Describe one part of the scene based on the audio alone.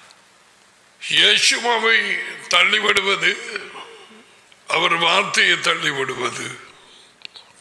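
A middle-aged man speaks calmly into a close microphone, in bursts with pauses.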